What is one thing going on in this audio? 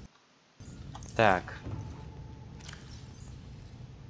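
A metal locker door clicks open.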